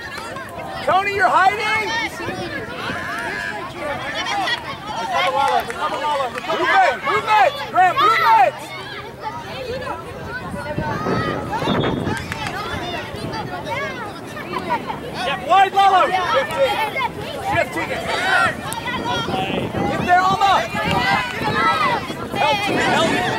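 Spectators, men and women, shout and cheer from a distance outdoors.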